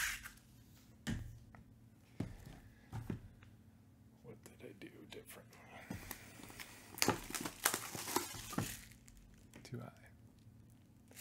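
Cardboard boxes are knocked and set down on a table with soft thuds.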